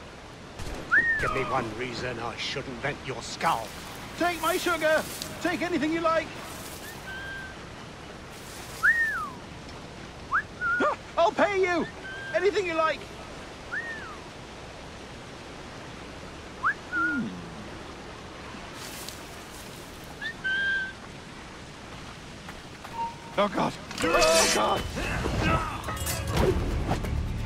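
A man calls out loudly in a harsh voice.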